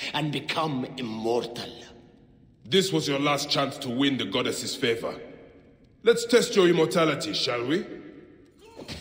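A man speaks calmly in a low voice.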